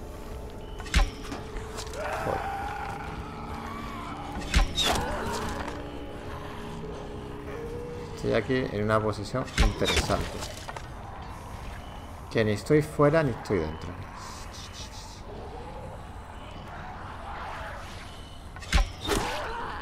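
Heavy blows land with sharp thuds.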